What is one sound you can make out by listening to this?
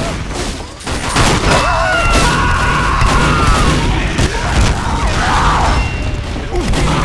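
Gunshots and explosions crackle in a game fight.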